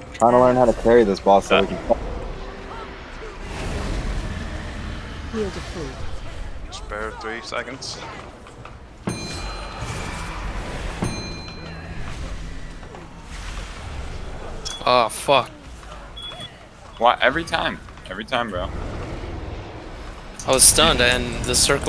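Magic spells whoosh and crackle amid a fantasy battle.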